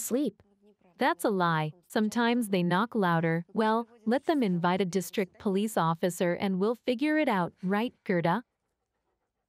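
A young woman speaks close by, with emotion.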